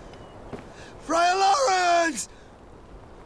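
A young man sings out loudly.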